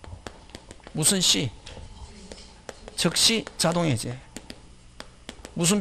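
A man speaks into a microphone in short bursts, like a lecturer.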